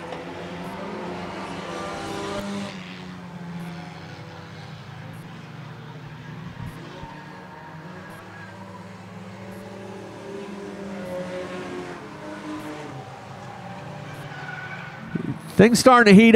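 Race car engines roar and whine past on a track.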